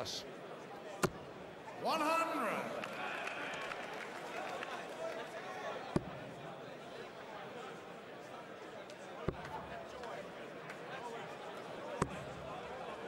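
Darts thud into a dartboard one after another.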